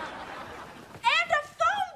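A young woman laughs loudly and squeals close by.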